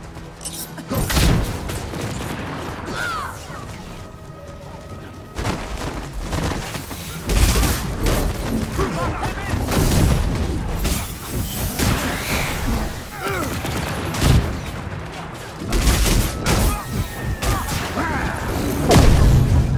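Blows land with sharp thuds and crackles.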